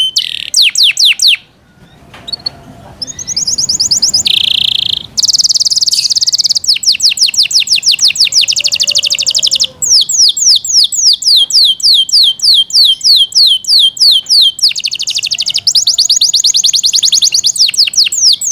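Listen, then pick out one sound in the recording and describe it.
A canary sings close by in rapid trills and chirps.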